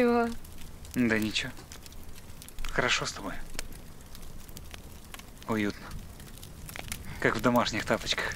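A man talks quietly and chuckles nearby.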